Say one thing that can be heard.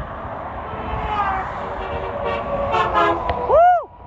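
A truck's air horn blasts loudly several times and drops in pitch as it passes.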